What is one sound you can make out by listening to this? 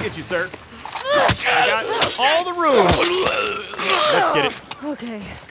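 A man screams and groans in pain, close by.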